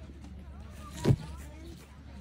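Leaves brush against the microphone with a short thump.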